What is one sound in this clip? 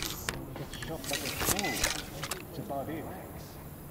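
Metal gear rattles as a rifle is raised.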